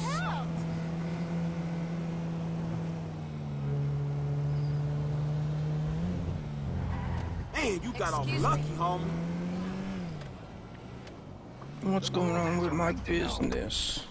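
A car engine hums steadily, rising and falling in pitch as the car speeds up and slows down.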